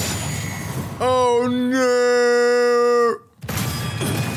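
A magical energy blast bursts loudly.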